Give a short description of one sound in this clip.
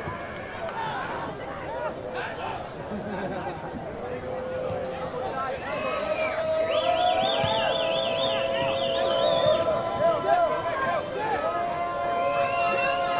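Footballers shout to each other across an open pitch.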